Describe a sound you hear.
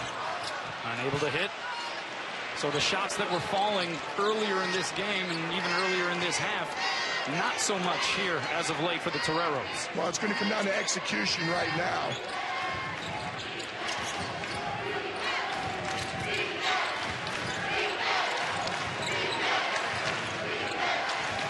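A large indoor crowd murmurs and cheers in an echoing arena.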